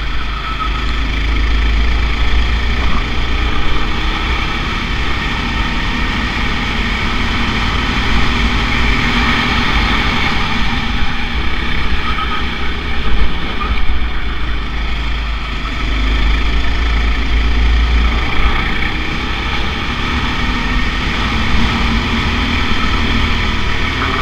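A kart's small engine buzzes loudly close by, revving up and down through the corners.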